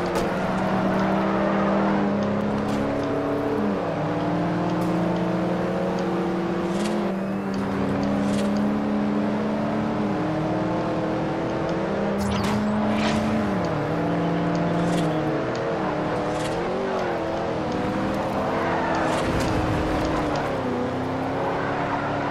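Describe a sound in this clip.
A racing car engine roars steadily, its pitch rising and dropping with each gear change.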